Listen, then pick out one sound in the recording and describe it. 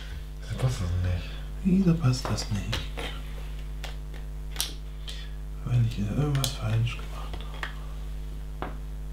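Plastic bricks click and rattle as hands handle them.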